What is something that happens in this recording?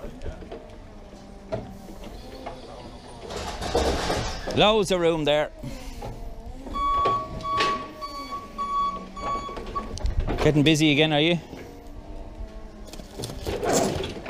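A forklift motor hums close by.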